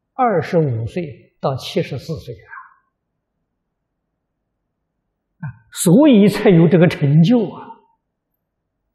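An elderly man speaks calmly and clearly into a microphone, with pauses.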